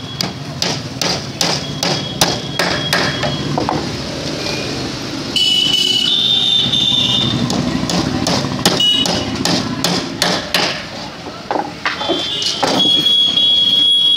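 A motorcycle engine passes by on the street.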